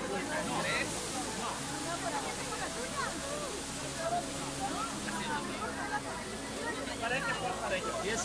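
Water splashes steadily in a fountain.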